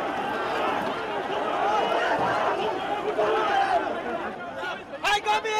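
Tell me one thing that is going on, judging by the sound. A crowd of people shouts and chants loudly outdoors.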